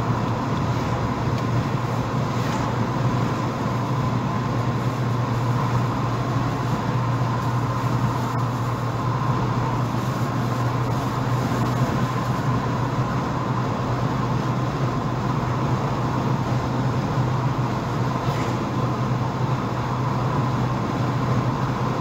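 A car engine hums steadily while driving along a highway.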